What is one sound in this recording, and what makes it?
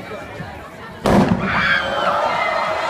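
A fire flares up with a sudden whoosh.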